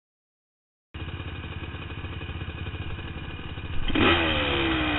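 A dirt bike engine idles close by.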